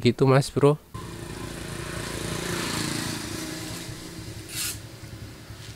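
A metal tube scrapes as it slides into a fork leg.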